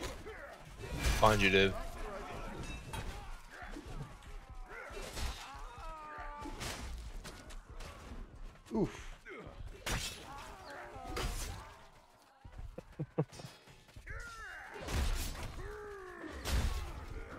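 Men shout and grunt in battle.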